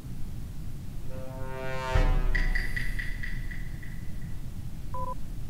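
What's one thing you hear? A bright electronic fanfare swells up and rings out.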